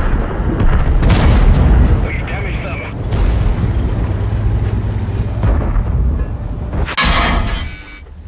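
A tank cannon fires with a loud, booming blast.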